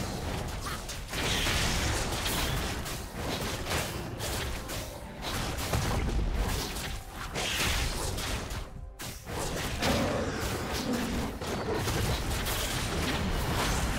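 Game spell effects crackle and clash as characters battle a monster.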